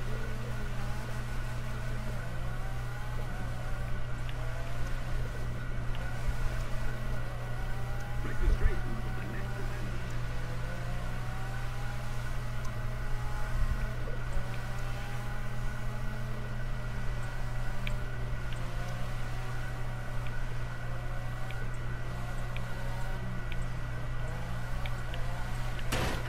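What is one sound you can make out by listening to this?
Tyres squeal as a car slides sideways on wet asphalt.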